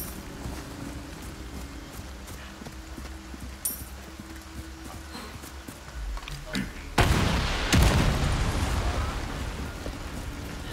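Footsteps run over soft ground.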